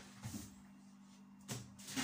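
A baking tray is set down on a countertop with a soft knock.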